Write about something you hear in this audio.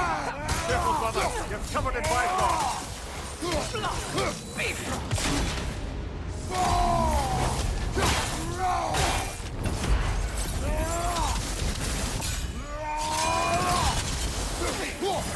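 Heavy blades clash and strike repeatedly.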